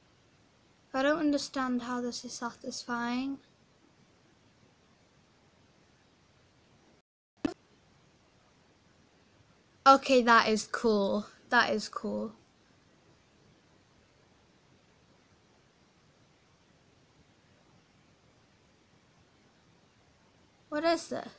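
A young girl speaks close to a microphone, with animation.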